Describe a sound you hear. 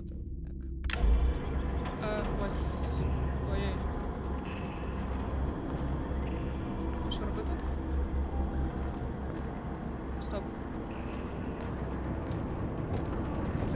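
A low, eerie drone hums steadily.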